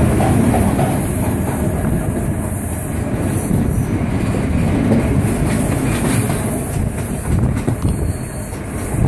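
Wind rushes loudly past an open train window.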